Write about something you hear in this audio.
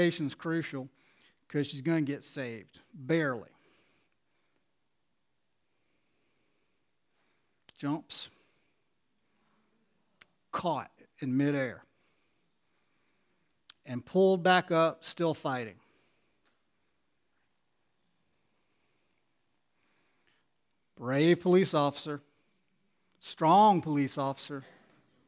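A middle-aged man speaks calmly into a headset microphone, with long pauses.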